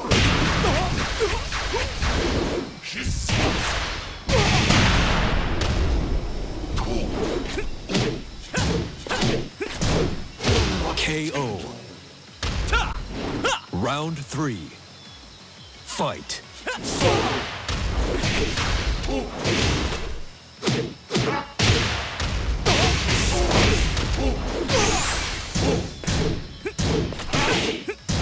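Punches and kicks land with sharp, heavy smacks in quick bursts.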